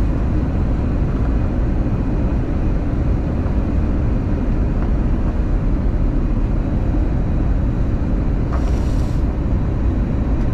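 Jet engines roar steadily with a deep, constant rumble.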